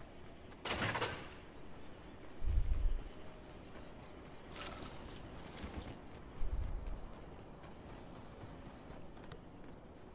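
Footsteps patter quickly on a concrete floor.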